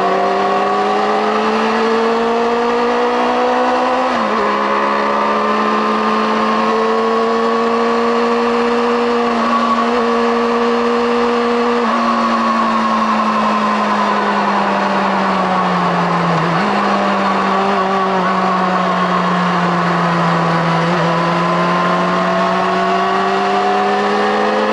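A motorcycle engine roars loudly and close, shifting pitch through gear changes.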